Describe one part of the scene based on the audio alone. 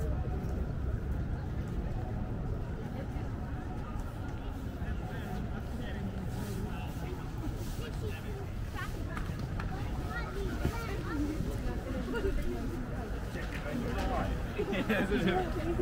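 A low city rumble goes on steadily outdoors.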